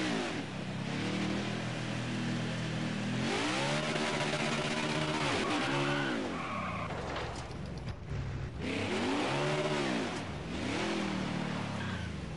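A stock car's V8 engine revs up and down.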